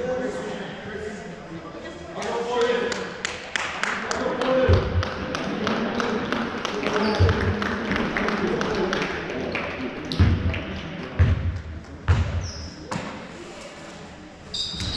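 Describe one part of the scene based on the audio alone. A crowd of people chatters in the background of an echoing hall.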